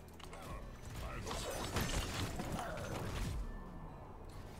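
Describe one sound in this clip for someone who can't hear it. Spell blasts and explosions crackle in a fast game battle.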